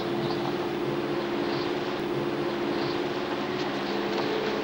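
A river rushes over rocks.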